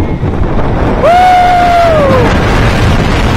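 A rider screams in a long, high-pitched cry.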